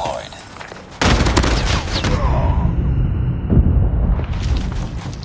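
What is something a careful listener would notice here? Gunshots ring out in a rapid, loud burst.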